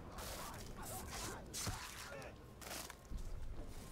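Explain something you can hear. Sword blows strike and slash in a close fight.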